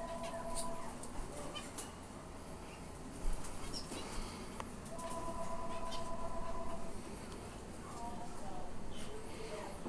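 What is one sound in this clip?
Small caged birds chirp and twitter nearby.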